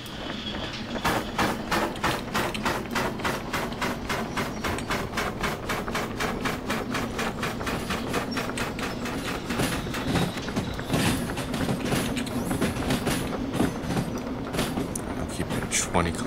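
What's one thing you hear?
A steam locomotive chuffs in a fast, steady rhythm.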